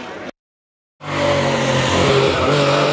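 A historic rally car engine revs hard through a hairpin.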